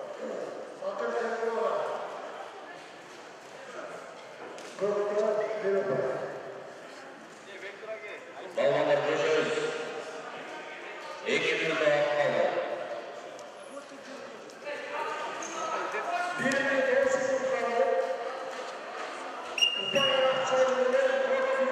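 Spectators shout encouragement in bursts, echoing around a large hall.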